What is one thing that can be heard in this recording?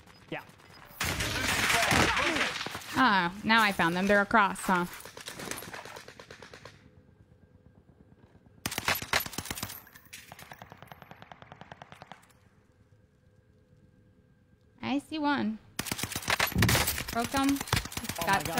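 Rifle shots crack in bursts.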